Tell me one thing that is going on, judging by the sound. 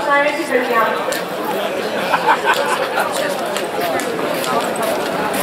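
Several men and women chatter nearby outdoors.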